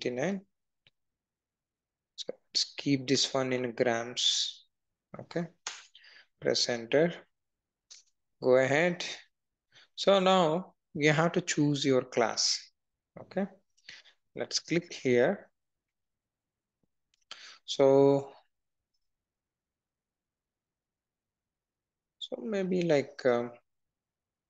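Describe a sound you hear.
A young man speaks calmly into a close headset microphone, with short pauses.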